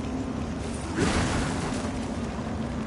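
Wooden planks splinter and crash down.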